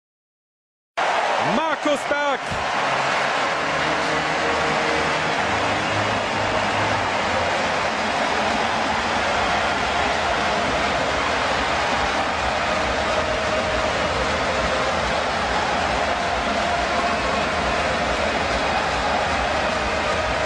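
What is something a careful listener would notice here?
A large stadium crowd cheers and chants loudly.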